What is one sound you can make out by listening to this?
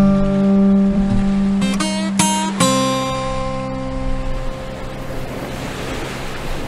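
A guitar is strummed, ringing out in clear chords.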